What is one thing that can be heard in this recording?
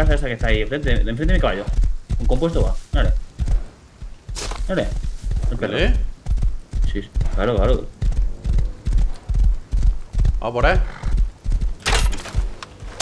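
A horse's hooves pound steadily at a gallop.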